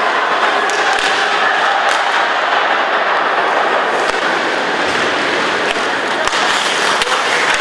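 A puck clacks off hockey sticks.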